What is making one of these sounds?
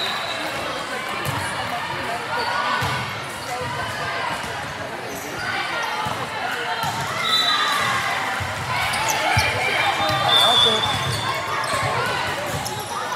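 A volleyball is struck with a sharp thump.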